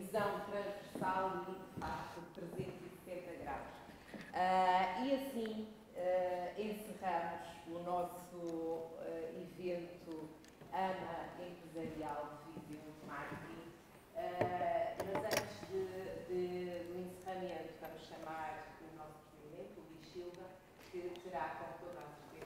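A young woman speaks steadily through a microphone in a large echoing hall.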